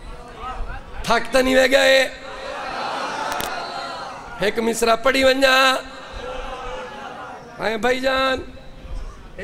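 A crowd of men chants along in loud bursts.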